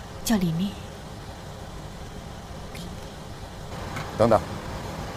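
A woman speaks briefly in a low voice close by.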